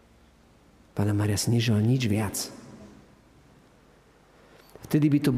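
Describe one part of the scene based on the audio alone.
A man chants through a microphone in an echoing hall.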